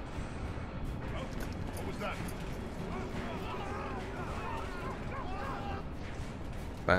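A young man exclaims in surprise.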